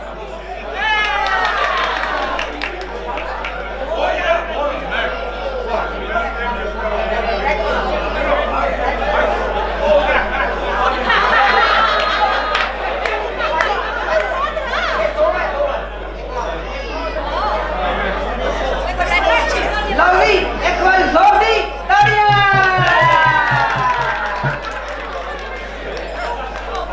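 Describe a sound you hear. Women and men chatter and laugh all around in an echoing room.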